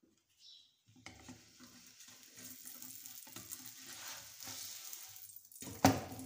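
Oil sizzles in a hot pan.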